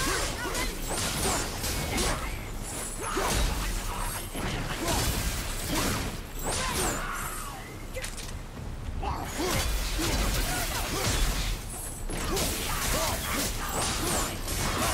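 Heavy weapon blows thud and clang in quick succession.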